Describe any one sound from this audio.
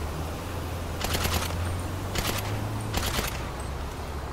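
Short bursts of gunfire rattle loudly.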